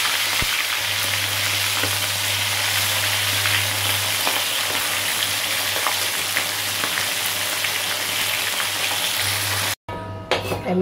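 Fish sizzles as it fries in deep oil.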